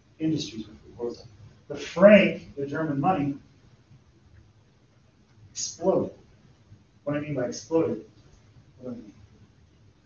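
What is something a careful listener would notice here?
A man speaks calmly to a group, pausing between phrases.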